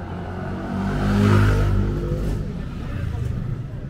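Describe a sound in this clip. A motor scooter engine roars past close by and fades away.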